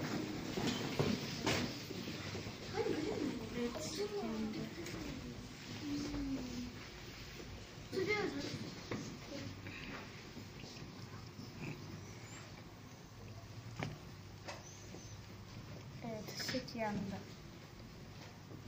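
Young children talk and chatter close by.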